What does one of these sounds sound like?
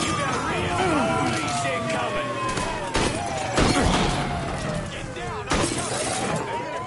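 Gunshots ring out and bullets strike a wall.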